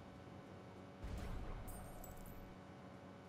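A deep whoosh and burst of game effects play as a ball hits a hoop.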